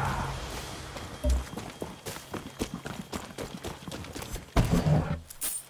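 Footsteps crunch on dirt ground.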